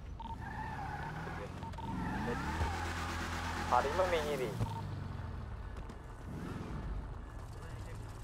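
A car engine hums and revs as a car pulls away.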